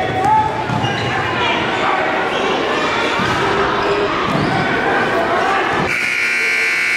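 A crowd cheers in a large echoing gym.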